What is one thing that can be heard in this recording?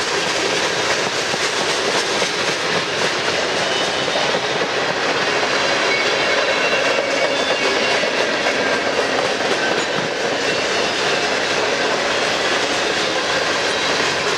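A long freight train rumbles past close by, its wheels clattering steadily on the rails.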